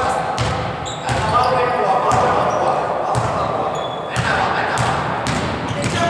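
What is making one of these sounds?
A basketball bounces on a hardwood court in an echoing gym.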